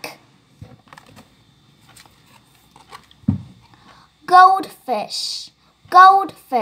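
A young girl speaks close by, clearly and with animation.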